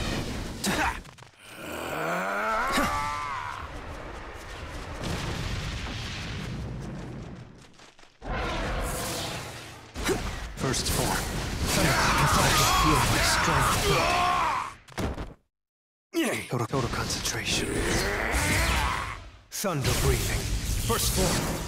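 Sword slashes whoosh and crackling blasts burst again and again.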